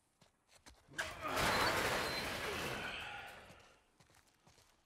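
A metal garage door rattles and rolls open.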